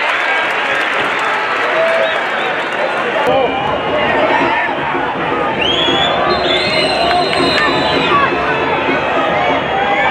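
A large crowd chants and cheers loudly in a stadium.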